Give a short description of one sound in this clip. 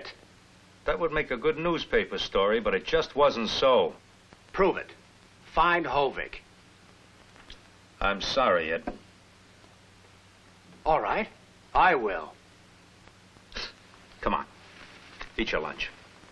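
A man speaks firmly and insistently nearby.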